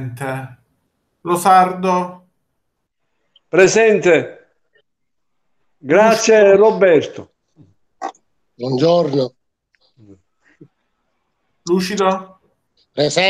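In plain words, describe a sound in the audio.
A man speaks calmly in short phrases through an online call.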